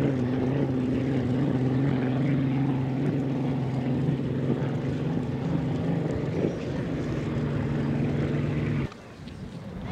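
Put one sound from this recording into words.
Spray hisses behind a speeding boat.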